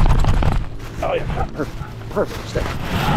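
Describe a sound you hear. A small dog whines in short, high yelps.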